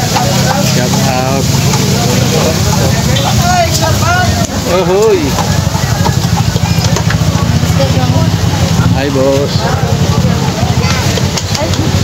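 Men and women talk and chatter nearby outdoors.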